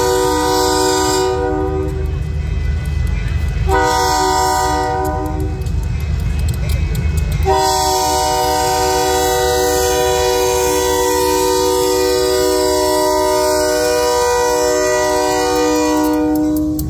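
A diesel locomotive rumbles past close by.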